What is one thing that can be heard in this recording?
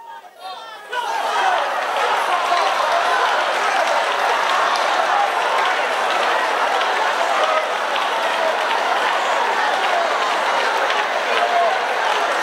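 A large crowd of women chatters and cries out outdoors.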